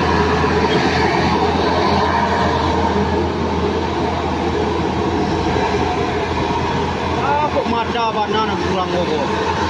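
A bus engine rumbles steadily close by.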